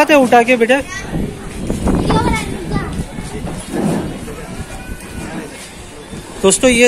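A boy talks close by.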